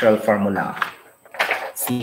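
Paper rustles close by.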